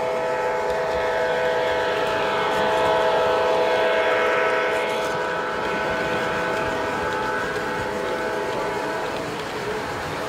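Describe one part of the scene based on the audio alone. A model diesel locomotive drones with a steady engine hum and passes close.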